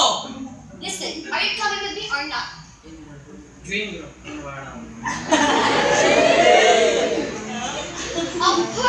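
A young woman and a young man speak with animation on a stage, a little distant in an echoing hall.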